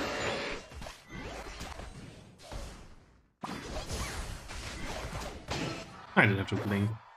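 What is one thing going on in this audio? Video game battle effects whoosh and burst.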